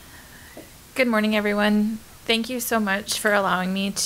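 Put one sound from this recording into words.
A woman speaks calmly into a microphone in a room.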